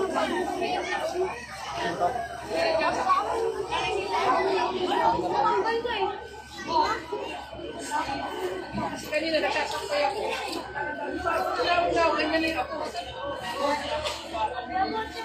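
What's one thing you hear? A crowd of men and women talks and shouts excitedly nearby outdoors.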